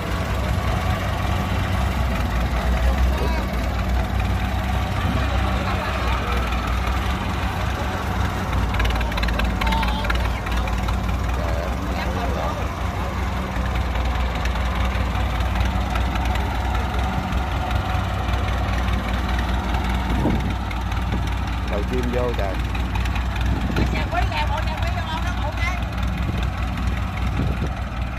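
A tractor diesel engine rumbles steadily close by.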